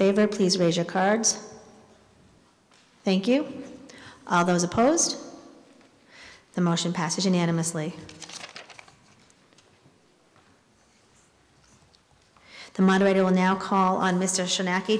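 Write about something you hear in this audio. A woman speaks calmly into a microphone in a large echoing hall.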